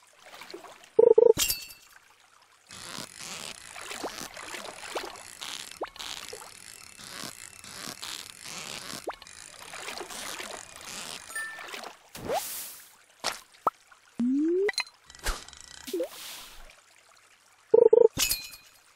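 A short double blip sounds as a fish bites.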